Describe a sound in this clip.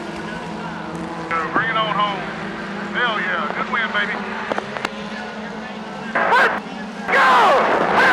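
Race car engines roar steadily around a track.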